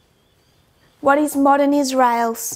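A woman speaks clearly into a close microphone.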